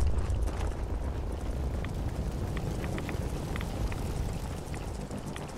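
Fire roars and crackles nearby.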